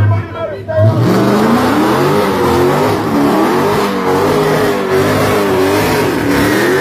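Tyres screech and spin on pavement.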